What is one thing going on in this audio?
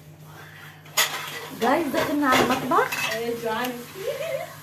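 Girls laugh and chatter excitedly.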